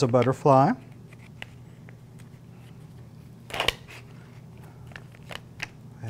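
Small plastic items click softly as they are handled.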